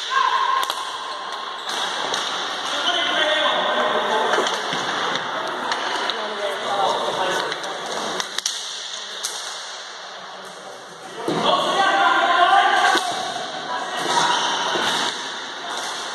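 Players shout and call out to each other across a large echoing hall.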